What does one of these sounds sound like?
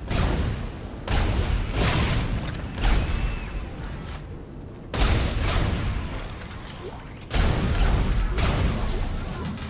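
Heavy boots thud on a metal floor.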